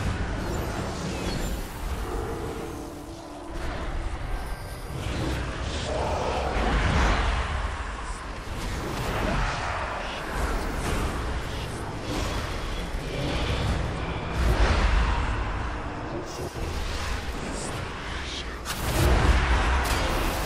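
Spell effects whoosh and crackle in a game battle.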